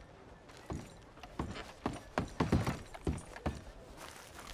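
Boots thud on wooden boards.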